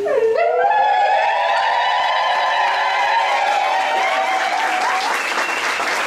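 Women ululate loudly and shrilly.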